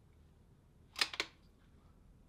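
A rifle fires two sharp shots close by.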